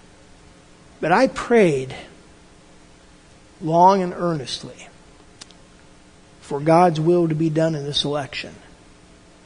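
An elderly man speaks calmly in short phrases, close to the microphone.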